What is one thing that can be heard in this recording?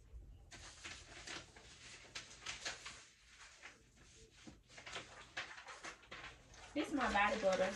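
Papers rustle and crinkle as they are handled.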